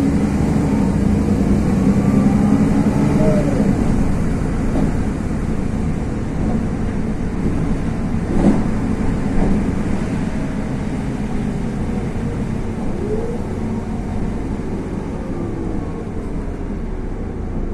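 An engine hums steadily from inside a moving vehicle.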